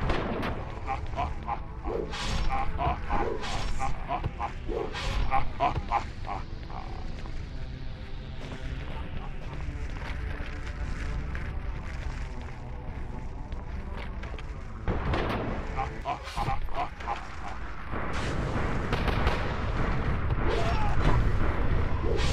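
Sword slashes and hits clang in quick bursts.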